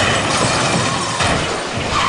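Glass shatters as a heavy object smashes onto a car.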